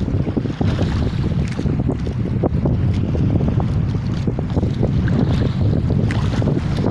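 A boat's engine rumbles loudly and steadily nearby.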